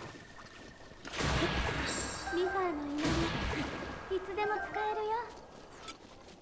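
An explosion booms loudly, followed by bright ringing chimes.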